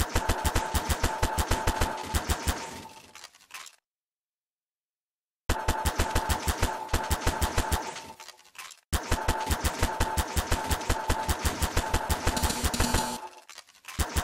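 A zapping tool fires in rapid bursts of sharp clicks.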